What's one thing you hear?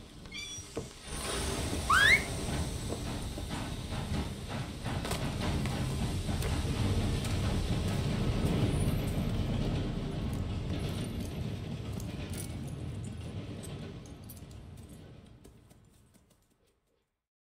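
A steam locomotive rumbles and chugs steadily, then fades away.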